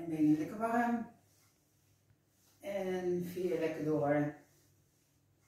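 A middle-aged woman speaks calmly and clearly, close by.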